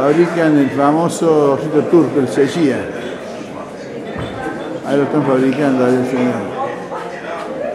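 A man talks close by, with animation.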